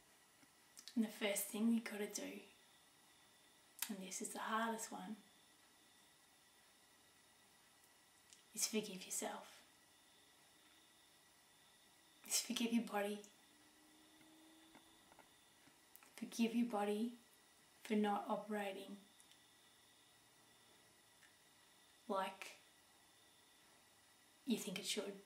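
A middle-aged woman speaks calmly and close by, in short phrases with pauses.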